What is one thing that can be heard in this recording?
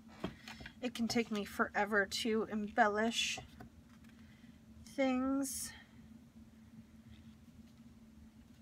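Paper rustles and crinkles softly as hands press it down.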